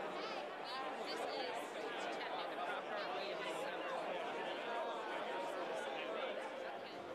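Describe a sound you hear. An older woman talks and laughs cheerfully up close.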